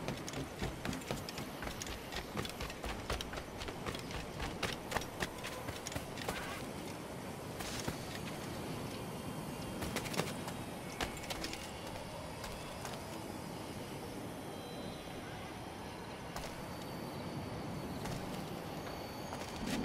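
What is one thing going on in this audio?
Footsteps thud quickly over ground.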